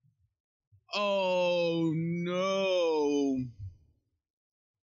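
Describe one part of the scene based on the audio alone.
A young man sings a long, high note loudly and close to a microphone, then stops.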